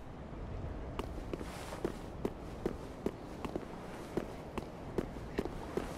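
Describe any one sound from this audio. Footsteps run quickly and evenly over stone paving.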